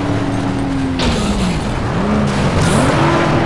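A car crashes through a wooden fence with a crunch.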